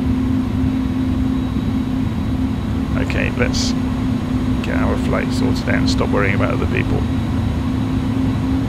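Aircraft engines hum steadily.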